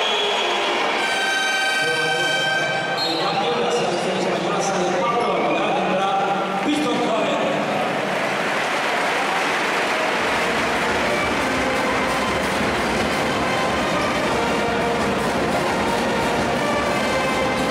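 A large crowd cheers and chatters in a big echoing arena.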